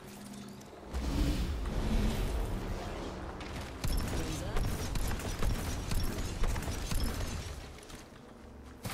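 A young woman talks into a microphone with animation.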